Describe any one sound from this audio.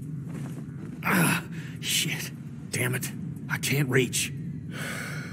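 A man grunts and curses with strain.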